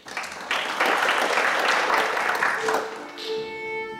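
A violin plays loudly in a large hall.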